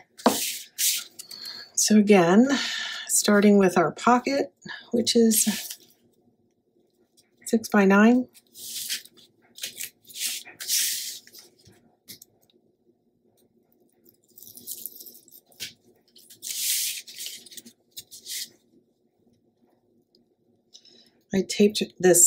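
A bone folder scrapes firmly along paper.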